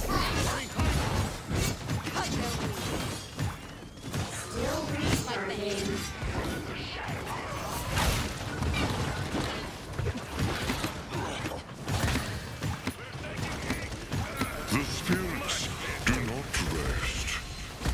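Rapid weapon shots and game effects crackle and burst.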